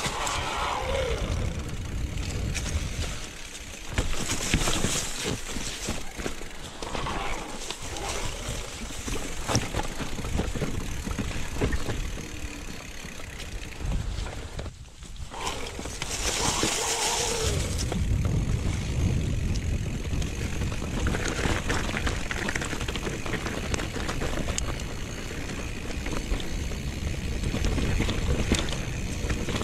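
A bicycle's frame and chain clatter over bumps.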